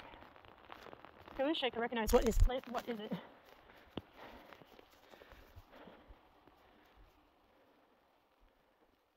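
Footsteps crunch softly on dry pine needles and twigs.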